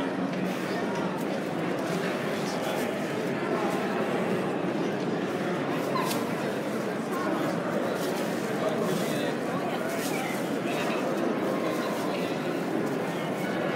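A crowd murmurs with many voices in a large echoing hall.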